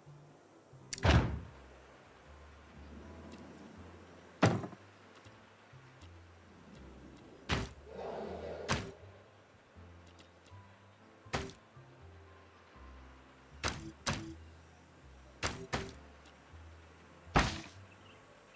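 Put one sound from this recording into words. A game interface clicks sharply as menu options change.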